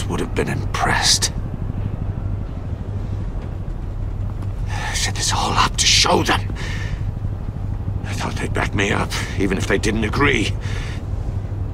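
A man speaks in a low, subdued voice, close by.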